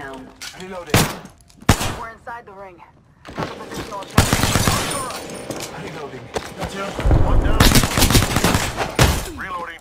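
A pistol fires sharp single shots.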